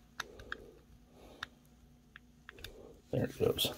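Small plastic toy parts click softly as they are handled.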